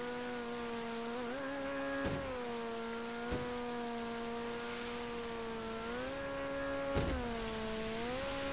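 A motorboat engine drones steadily, its pitch rising and falling.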